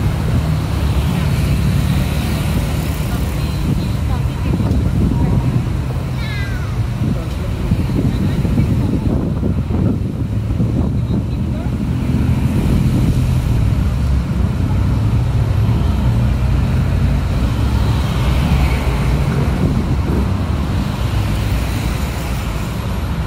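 Footsteps scuff along a pavement.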